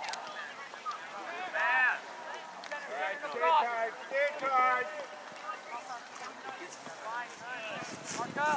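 Young players shout loudly to each other outdoors.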